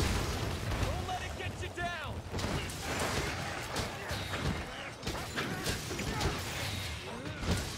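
A large monster roars.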